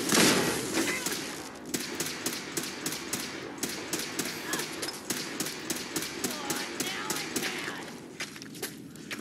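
Laser guns fire in rapid bursts with loud blasts.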